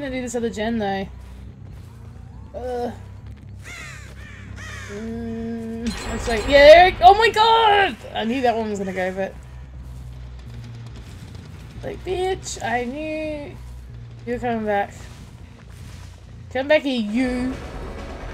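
A woman talks with animation into a microphone, close by.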